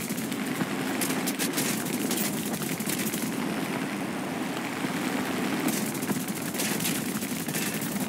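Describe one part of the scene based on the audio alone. Flak shells burst with sharp bangs.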